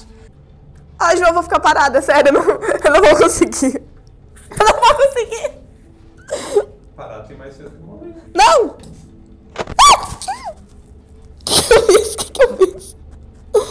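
A teenage girl screams and shrieks close by.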